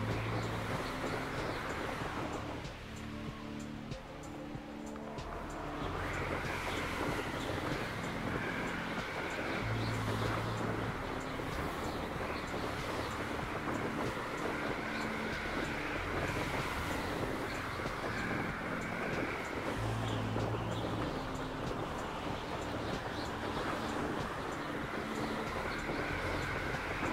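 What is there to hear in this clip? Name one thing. Wind rushes loudly and steadily past.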